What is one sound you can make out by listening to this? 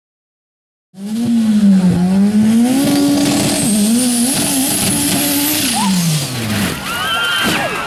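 An engine revs loudly and roars.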